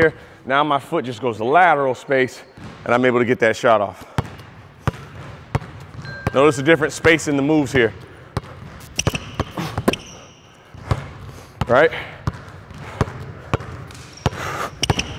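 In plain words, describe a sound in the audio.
A basketball bounces on a hard floor with a slight echo.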